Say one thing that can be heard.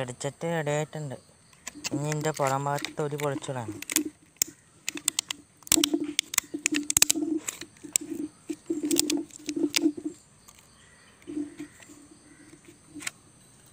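Plastic bottles crinkle and knock as hands handle them.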